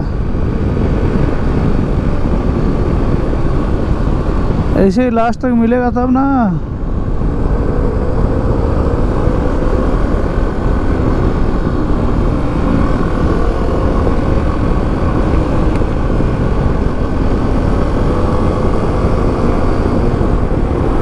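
Wind rushes and buffets loudly past the rider.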